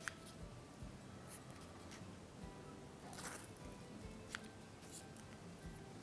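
Small scissors snip softly.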